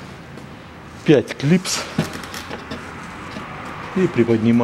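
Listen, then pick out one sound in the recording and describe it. Hard plastic trim rattles and scrapes as a hand pulls it loose.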